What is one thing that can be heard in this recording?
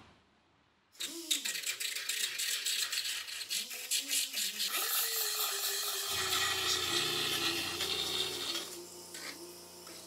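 A power drill with a wire brush whirs and scrubs harshly against a hard surface.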